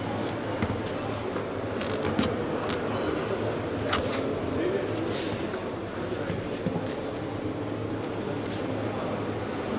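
A hand taps and rubs against hard plastic panels.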